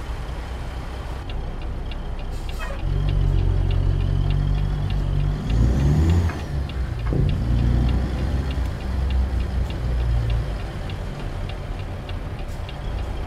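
A truck's diesel engine rumbles deeply, growing louder as the truck pulls away and then easing off.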